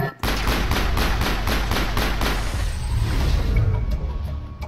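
Rapid gunfire rattles loudly in quick bursts.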